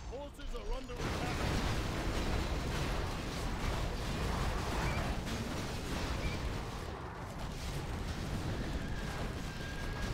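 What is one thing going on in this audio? Swords clash in a large battle.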